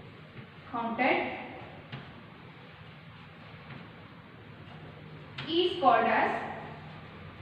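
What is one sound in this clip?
A woman speaks clearly and calmly, as if teaching.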